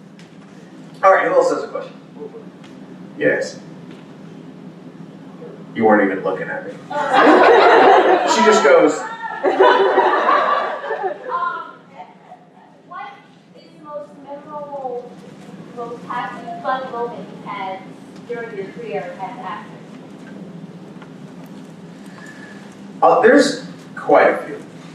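A man speaks into a microphone over a loudspeaker, in a large room, in a lively way.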